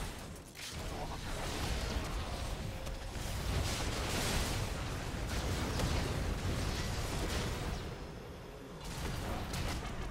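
Video game spell effects crackle and clash in a fight.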